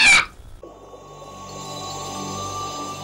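Bubbles gurgle underwater.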